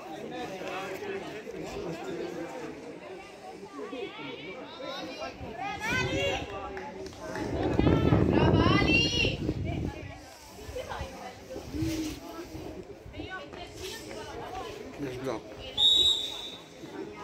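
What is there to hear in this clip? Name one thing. Young women players call out to each other across an open outdoor pitch.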